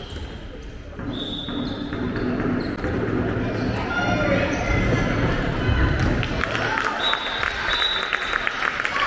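Young boys shout to each other across an echoing hall.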